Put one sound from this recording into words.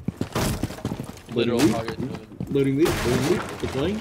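A wooden barricade is smashed and splinters.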